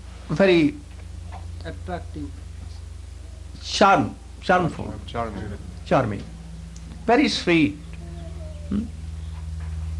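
An elderly man speaks slowly and expressively into a microphone, with pauses between phrases.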